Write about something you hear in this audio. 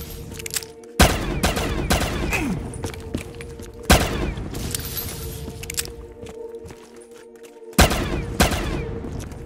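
A pistol fires loud, echoing shots.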